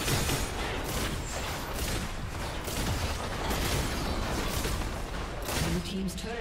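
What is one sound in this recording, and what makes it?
Magic spells burst and crackle in a rapid fight.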